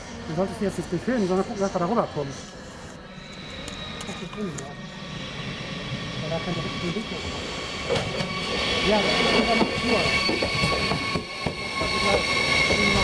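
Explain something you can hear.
A train approaches and rumbles closer along the rails.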